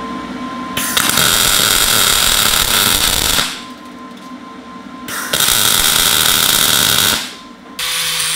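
A welder crackles and hisses loudly in short bursts.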